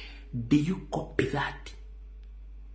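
A man speaks loudly and with animation, close to a microphone.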